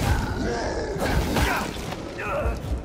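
A knife stabs wetly into flesh.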